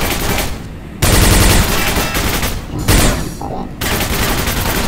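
A heavy gun fires in loud, rapid bursts.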